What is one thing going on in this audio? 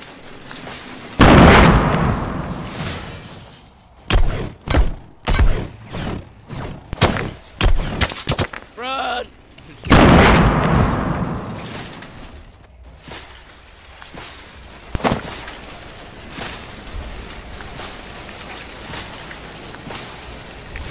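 A shopping cart rattles as it rolls over pavement.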